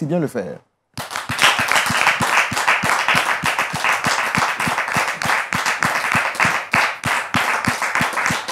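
An audience applauds, with steady rhythmic clapping.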